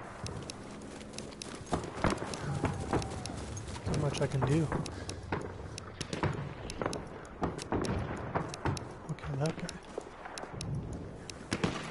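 Gunshots crack repeatedly in the distance.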